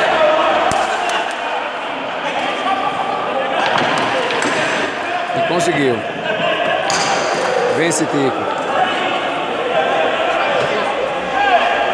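A crowd of young men chatters loudly in an echoing hall.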